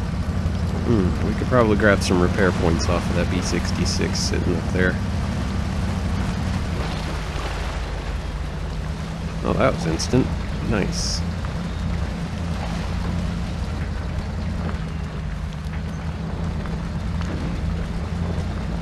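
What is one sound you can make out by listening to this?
A heavy truck engine rumbles and drones steadily.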